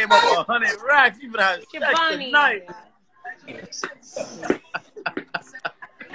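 A man laughs over an online call.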